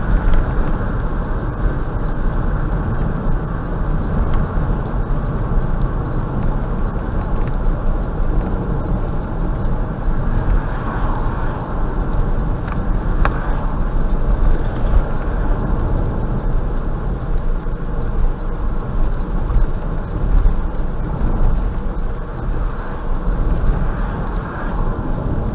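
A car's engine and tyres rumble steadily on a road from inside the car.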